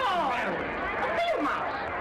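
A crowd murmurs and calls out.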